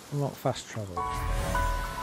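A magical chime rings out with a low boom.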